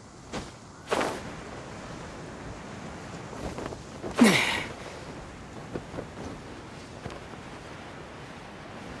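Wind rushes steadily past a game character gliding through the air.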